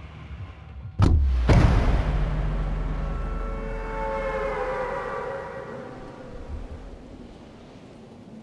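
Wind rushes loudly as a figure glides through the air, then slowly fades.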